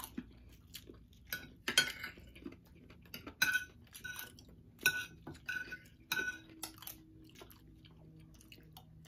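Spoons scrape and clink against plates.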